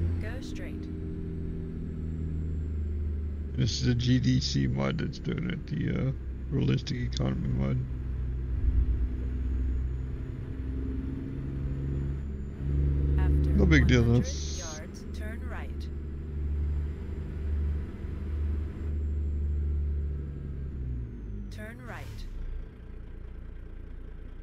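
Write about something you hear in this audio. A truck's diesel engine rumbles steadily as it drives.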